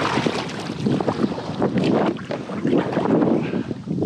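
A paddle dips and splashes in water.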